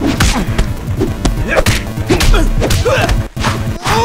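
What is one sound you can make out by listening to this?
Blows land with sharp thuds during a scuffle.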